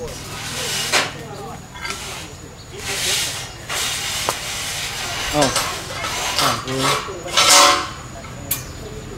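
Men talk outdoors at a distance.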